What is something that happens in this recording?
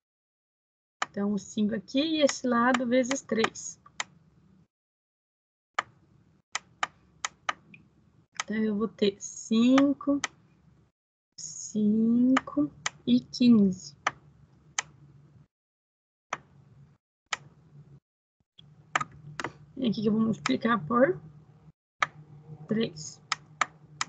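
A woman speaks calmly and explains through an online call.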